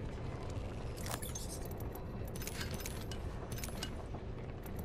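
Short clicks and chimes from a game sound as items are picked up.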